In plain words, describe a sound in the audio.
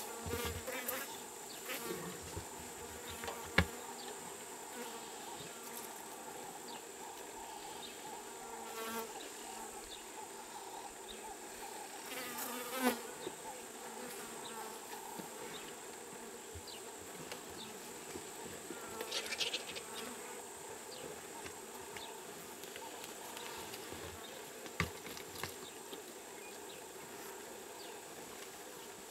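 A lion tears and chews wet meat from a carcass.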